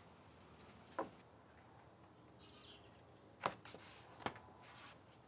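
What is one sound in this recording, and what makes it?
A thin wood veneer rustles and flexes.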